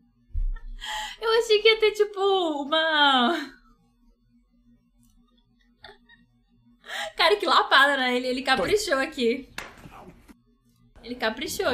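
A young woman talks cheerfully close to a microphone.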